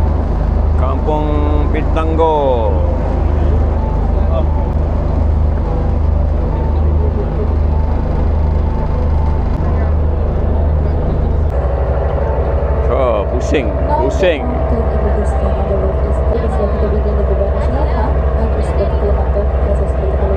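People chatter in the background.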